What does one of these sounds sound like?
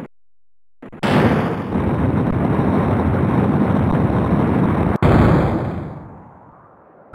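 Steam jets hiss loudly in gusts.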